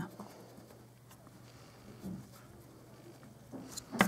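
An eraser rubs on paper.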